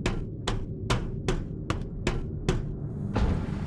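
Footsteps clang on a metal grate walkway at a quick, even pace.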